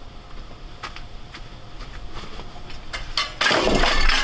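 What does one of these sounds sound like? A shovel scrapes and knocks through loose debris.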